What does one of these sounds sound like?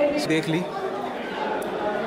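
Young people chatter in a large echoing hall.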